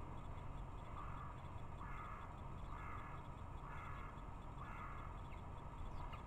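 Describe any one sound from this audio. A small bird chirps in short repeated bursts nearby.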